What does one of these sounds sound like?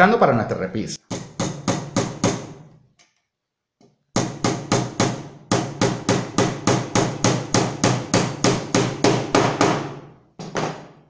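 A hammer taps rapidly on small nails in wood.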